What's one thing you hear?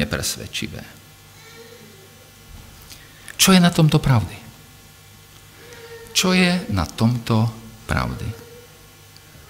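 A middle-aged man speaks slowly and deliberately through a microphone in an echoing room, with long pauses.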